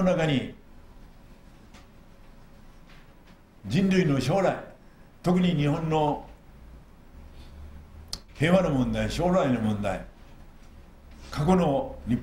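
An elderly man speaks slowly and formally into a microphone, with pauses between phrases.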